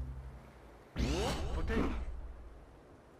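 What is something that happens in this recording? A game menu chimes with a short swooshing sound as a selection is made.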